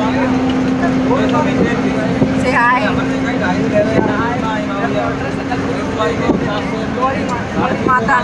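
Young women laugh nearby.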